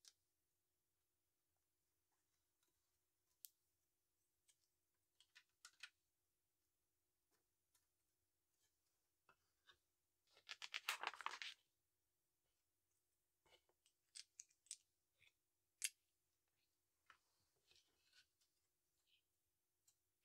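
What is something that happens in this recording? Plastic toy bricks click and clatter as they are pressed together and rummaged.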